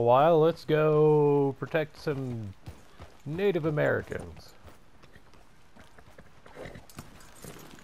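A horse's hooves clop slowly on a dirt path.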